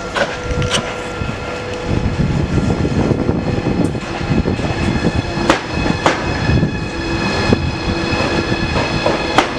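Train brakes squeal with a high ringing whine.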